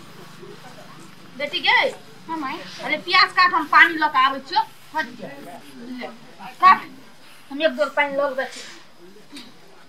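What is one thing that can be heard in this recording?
Two women talk quietly with each other.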